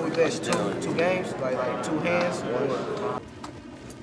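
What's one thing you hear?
Playing cards riffle and snap between hands.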